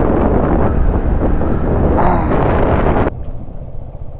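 Wind rushes loudly past the rider, then drops away.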